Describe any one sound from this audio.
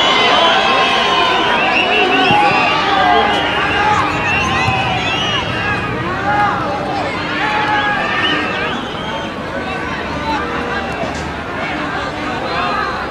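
Football players shout to each other across an open field.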